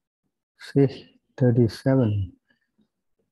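An elderly man chants through an online call microphone.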